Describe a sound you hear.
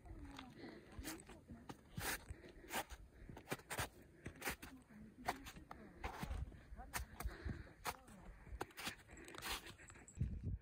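Footsteps crunch and squelch on wet, slushy snow.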